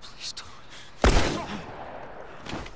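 A single loud gunshot rings out.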